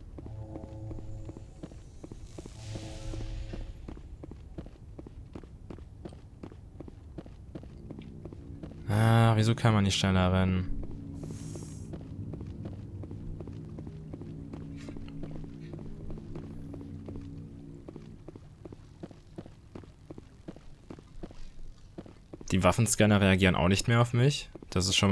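Footsteps run quickly on a hard floor.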